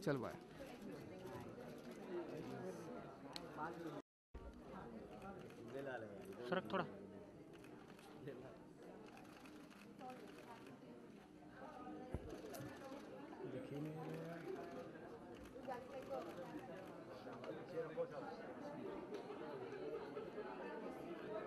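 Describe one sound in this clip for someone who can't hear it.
Young women talk with each other close by.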